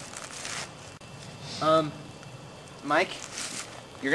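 Dry leaves rustle as a man kneels on the ground.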